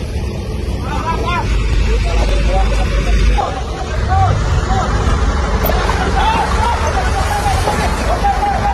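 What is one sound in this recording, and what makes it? Several men shout and call out excitedly outdoors.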